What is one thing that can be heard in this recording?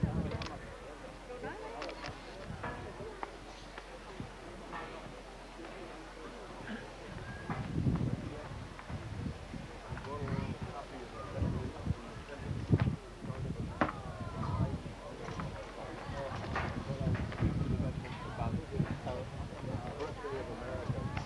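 A crowd of men and women murmurs and talks softly outdoors.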